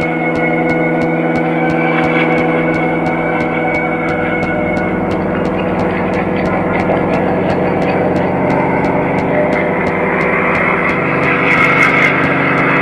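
Quick footsteps tap steadily on a hard tiled floor.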